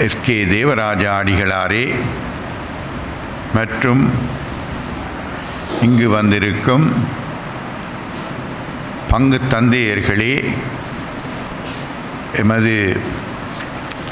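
An elderly man speaks slowly and solemnly into a microphone, heard through loudspeakers in an echoing hall.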